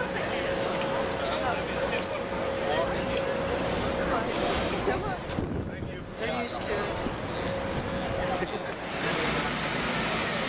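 A crowd of people chatter close by outdoors.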